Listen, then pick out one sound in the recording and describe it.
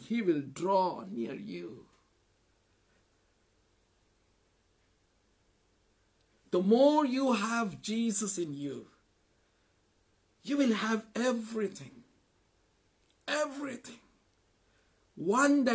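A man talks with animation, close to a microphone, in short bursts with pauses.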